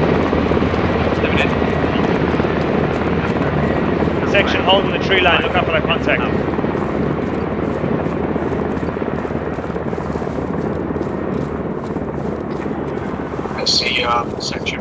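Footsteps crunch steadily over grass and forest ground.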